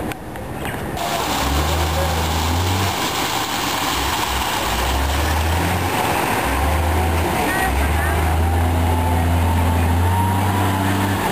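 A wheel loader's engine growls and revs.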